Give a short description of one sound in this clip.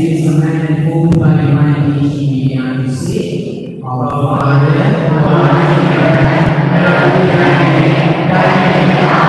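A man sings steadily through a microphone and loudspeaker in an echoing hall.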